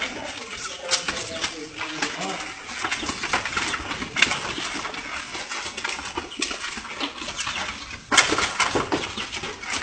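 Cattle hooves clatter and shuffle on dirt as a herd walks past.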